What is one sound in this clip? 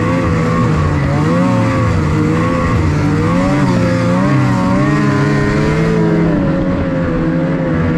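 A snowmobile engine roars up close, its pitch rising and falling as it rides.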